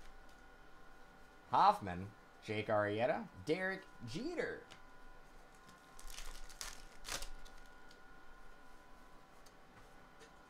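Trading cards rustle and flick as they are shuffled through.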